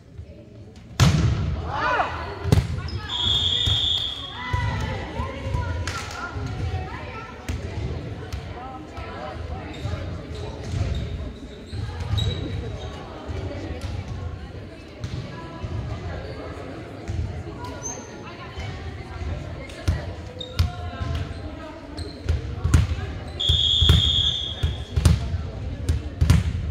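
Spectators cheer and shout.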